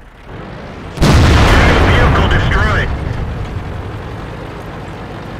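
A loud explosion booms and roars, then slowly fades.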